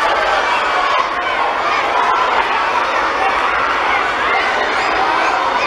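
A large crowd of young people chatters and cheers loudly in an echoing hall.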